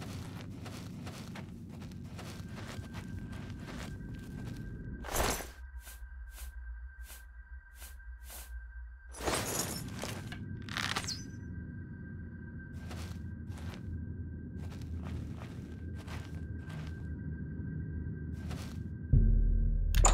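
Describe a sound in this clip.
Footsteps fall on a stone floor.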